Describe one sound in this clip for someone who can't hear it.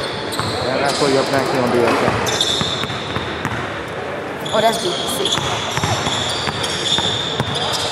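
Many young people talk and call out at once in a large echoing hall.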